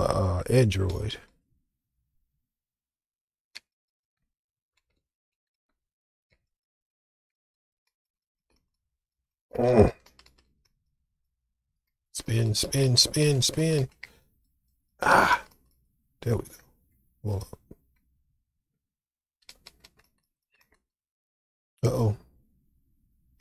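A man speaks in short bursts through a close microphone.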